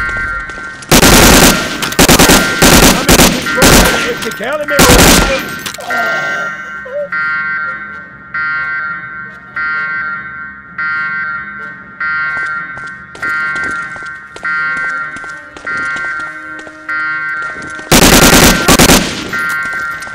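Rapid bursts of automatic gunfire ring out loudly and echo.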